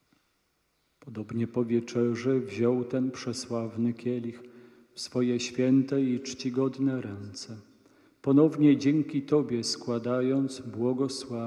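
A man chants in a large echoing room.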